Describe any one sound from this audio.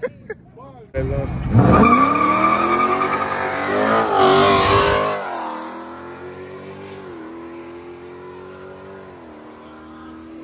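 A car engine revs loudly nearby and then idles.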